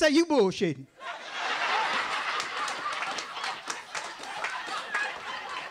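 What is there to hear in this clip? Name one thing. An audience laughs and chatters.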